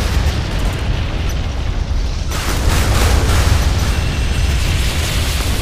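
Guns fire in rapid, heavy bursts.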